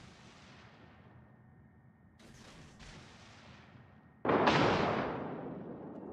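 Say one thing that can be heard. Shells splash into the sea.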